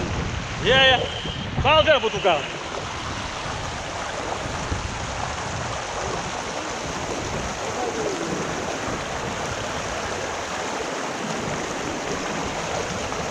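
A shallow river rushes and gurgles steadily over stones.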